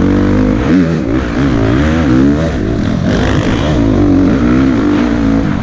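A dirt bike engine revs loudly up and down close by.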